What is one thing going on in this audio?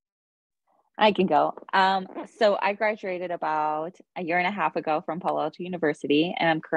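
A young woman talks with animation over an online call.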